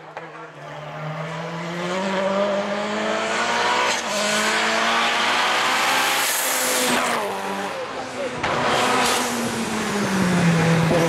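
A second race car engine roars up close, revving and shifting as it passes.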